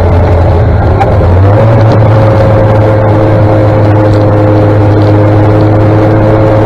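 A vehicle engine hums steadily close by.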